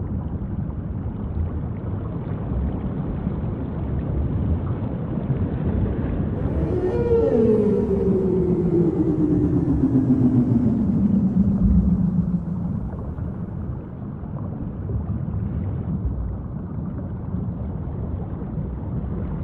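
Wind rushes steadily over open water.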